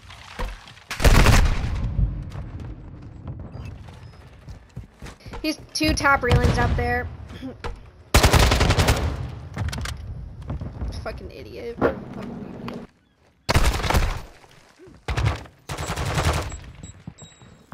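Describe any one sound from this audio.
Gunfire cracks in loud bursts.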